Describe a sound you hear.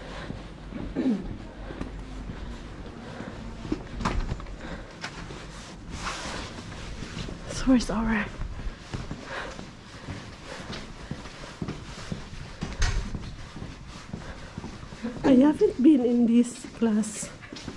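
Footsteps tap on a hard floor in an echoing hallway.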